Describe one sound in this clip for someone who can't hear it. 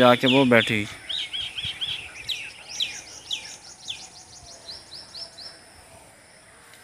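Small birds chirp in quick high bursts.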